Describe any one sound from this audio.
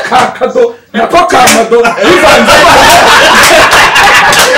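A group of women and men laugh loudly together.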